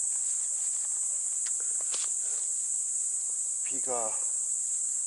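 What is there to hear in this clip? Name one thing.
Footsteps crunch over dry leaves and twigs.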